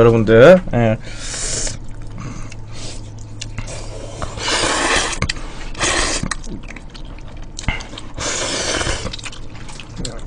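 A young man slurps noodles loudly.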